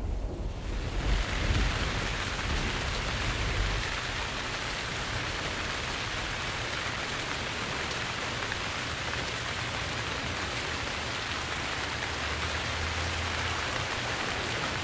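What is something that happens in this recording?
Waves wash steadily onto a shore.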